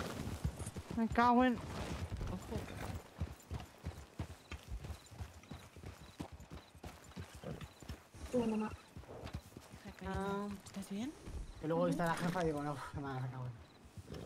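Horses' hooves thud steadily on a dirt track.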